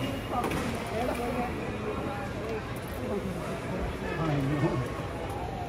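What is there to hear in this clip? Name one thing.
Plastic trays clatter as people handle them.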